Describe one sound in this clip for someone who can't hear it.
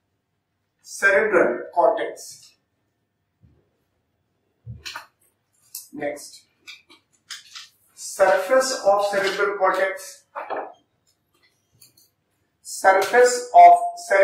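A man lectures calmly into a clip-on microphone, with pauses between phrases.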